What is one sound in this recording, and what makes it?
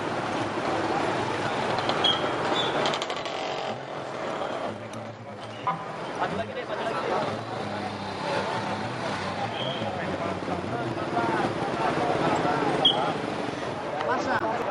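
Traffic passes on a busy road.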